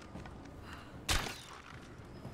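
A bow string twangs as an arrow is shot.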